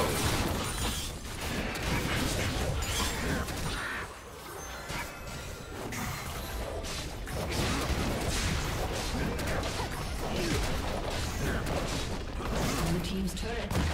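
Spell effects crackle and burst in quick succession as characters fight.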